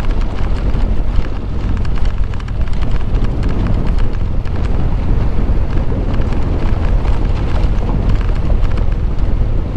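Tyres crunch and rattle over a rough dirt road.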